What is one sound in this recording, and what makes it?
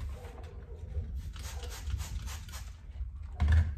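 A cloth wipes and rubs a surface.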